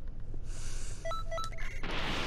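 Short electronic menu beeps sound.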